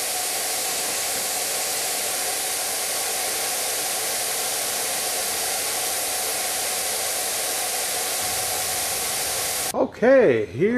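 A paint sprayer hisses steadily.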